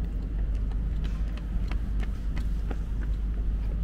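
Runners' footsteps patter close by and pass.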